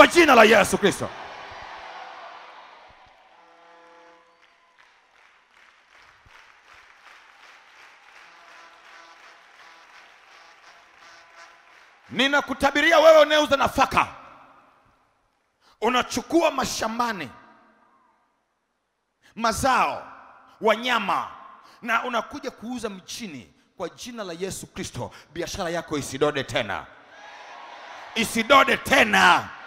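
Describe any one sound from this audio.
A crowd of worshippers prays and sings aloud together in an echoing hall.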